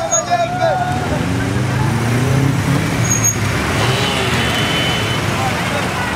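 A car engine rumbles as cars pull slowly past.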